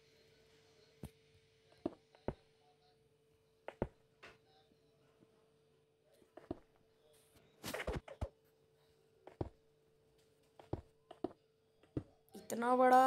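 Game blocks are placed with short, soft knocks, one after another.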